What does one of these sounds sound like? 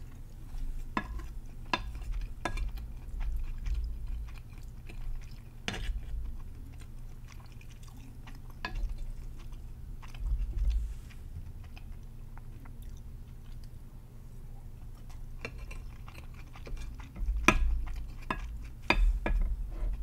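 A wooden spoon scrapes and taps against a plate.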